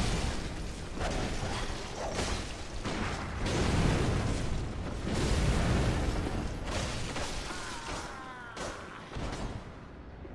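Blades slash and strike with heavy impacts.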